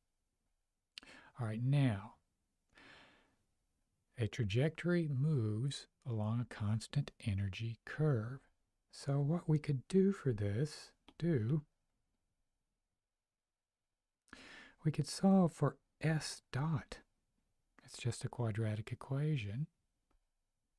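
A middle-aged man speaks calmly and explains into a close microphone, with pauses.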